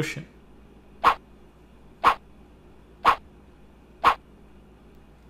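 A countdown timer beeps once a second.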